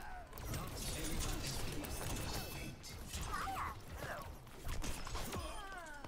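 A video game sword slashes and whooshes.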